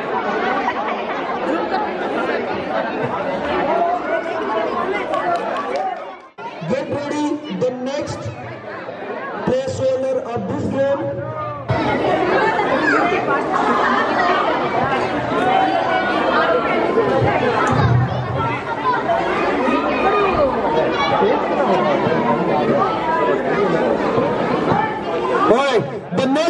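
A crowd of adults and children chatters all around, outdoors.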